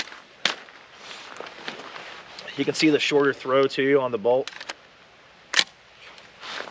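Metal parts of a rifle click as the rifle is handled.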